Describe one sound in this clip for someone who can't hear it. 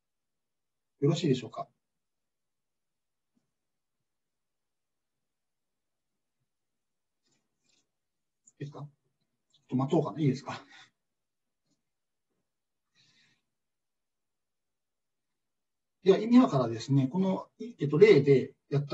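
A man speaks calmly into a microphone in short bursts, heard as through an online call.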